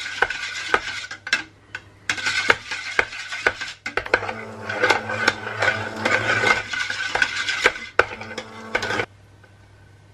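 A stick blender whirs loudly, churning thick liquid in a metal pot.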